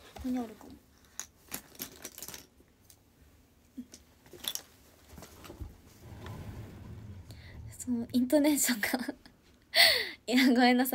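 A young woman speaks softly and close to a microphone.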